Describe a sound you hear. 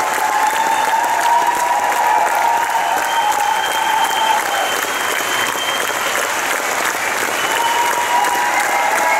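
An audience applauds loudly and steadily in a large hall.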